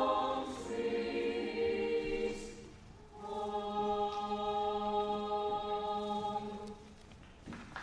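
A choir of young voices sings sustained closing chords in a large echoing hall.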